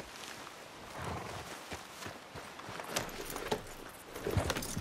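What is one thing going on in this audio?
A horse's hooves thud on soft ground.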